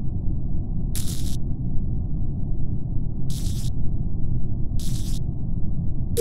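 Short electric buzzes sound as wires snap into place.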